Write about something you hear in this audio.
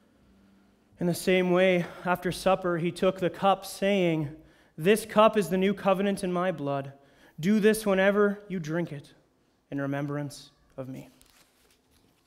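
A young man reads aloud through a microphone.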